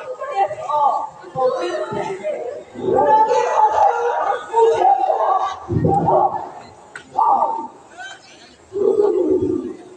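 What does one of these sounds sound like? A woman speaks with emotion, heard from a distance in a large hall.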